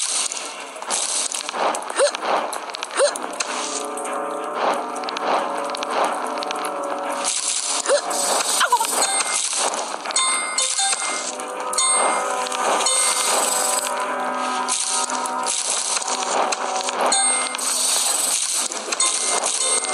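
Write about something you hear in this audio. Cheerful video game music plays steadily.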